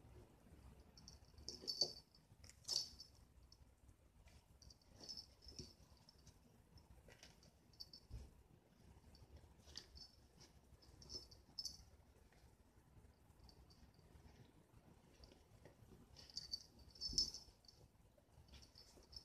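A small toy rustles and jingles as a cat bats and bites at it close by.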